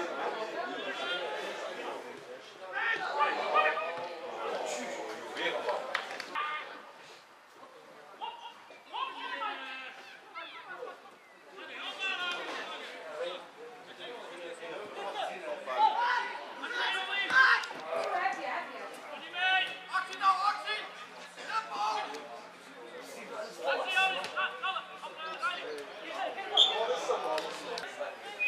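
Men shout and call out across an open football pitch.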